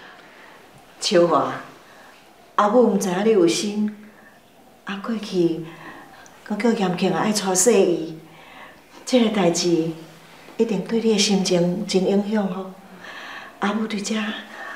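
A woman talks calmly in a room.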